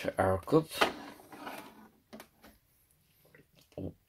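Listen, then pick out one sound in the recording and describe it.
A ceramic mug clunks down onto a coffee machine's drip tray.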